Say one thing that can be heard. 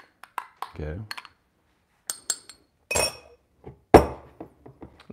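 A spoon clinks against a glass.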